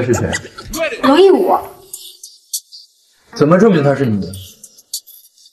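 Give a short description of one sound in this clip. A young woman speaks with surprise, close by.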